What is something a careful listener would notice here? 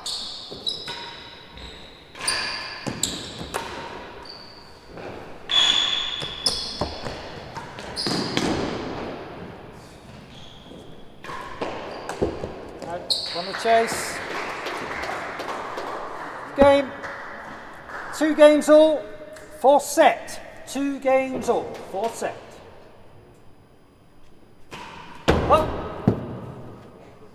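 A ball bounces and thuds off walls and the floor.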